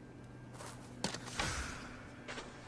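An arrow is shot with a sharp twang.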